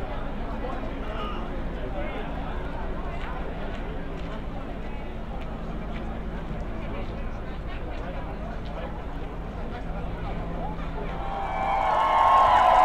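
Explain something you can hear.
A large crowd murmurs and talks outdoors.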